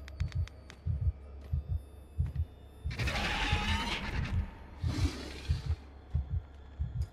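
Slow footsteps thud on a metal grating.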